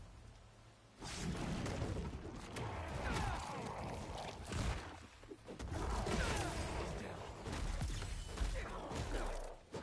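Rushing whooshes and crackling blasts sweep past.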